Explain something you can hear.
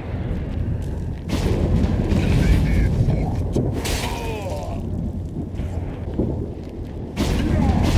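Heavy footsteps crunch on ice.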